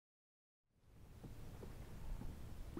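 Water laps softly against a small boat.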